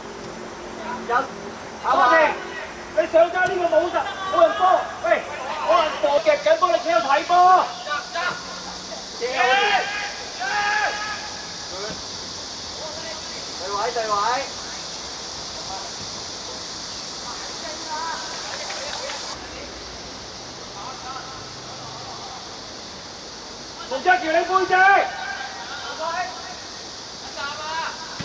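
Young players shout to each other across an open pitch outdoors.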